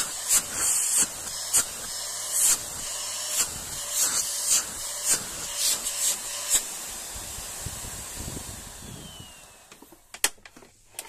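A vacuum cleaner motor roars loudly, then winds down and stops.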